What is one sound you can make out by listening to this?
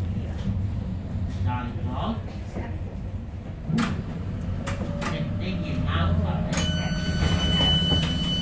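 An electric light rail car rumbles along the rails, heard from inside.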